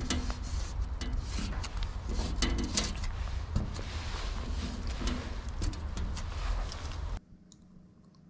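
A marker squeaks and rubs across glass.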